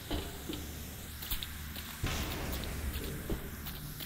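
Water drips and splashes.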